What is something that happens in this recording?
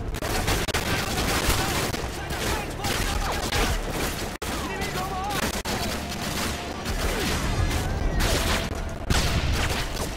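Rifles fire in rapid, crackling bursts.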